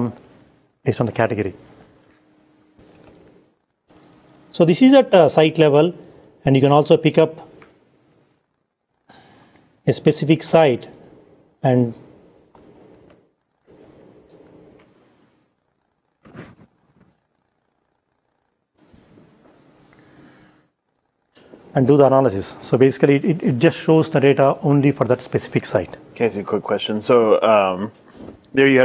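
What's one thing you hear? A man speaks calmly through a microphone, explaining with pauses.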